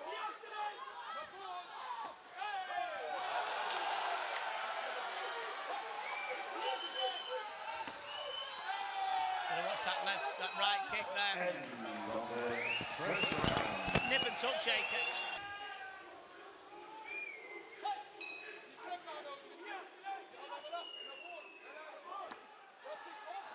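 A crowd cheers and shouts in a large hall.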